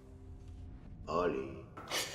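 An elderly man speaks in a low voice.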